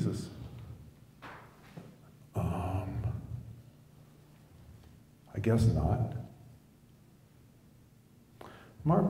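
A middle-aged man speaks into a microphone in bursts, heard through a loudspeaker in a room with some echo.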